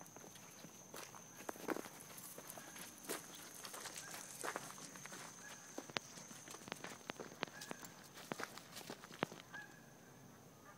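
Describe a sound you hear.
Footsteps crunch on a dirt path with dry leaves.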